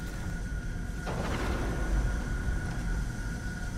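A magical beam of light whooshes and hums.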